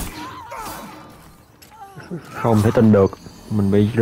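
A sword swings and strikes in a fight.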